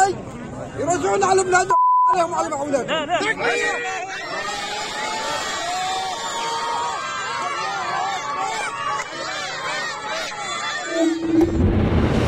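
A crowd of men and boys chants and shouts loudly outdoors.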